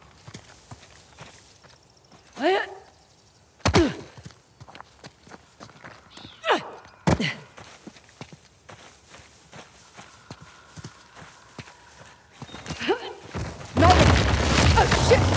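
Footsteps thud quickly on grass and stone.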